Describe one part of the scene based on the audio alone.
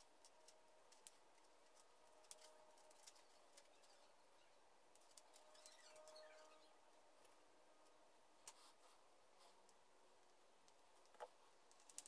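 Small wooden parts click and tap together in someone's hands.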